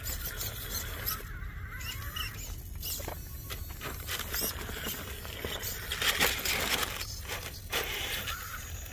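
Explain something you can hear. Plastic tyres scrape and knock on rock.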